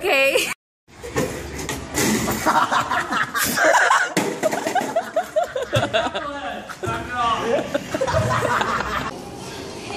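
A metal chair clatters across a hard floor.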